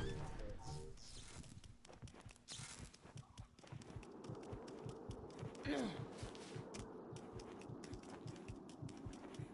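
Quick footsteps run on hard ground.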